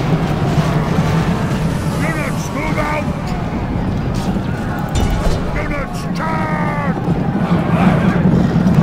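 The din of a large battle roars steadily.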